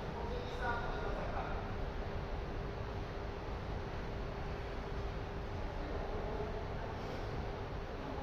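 Adult men and women call out now and then, far off in a large echoing hall.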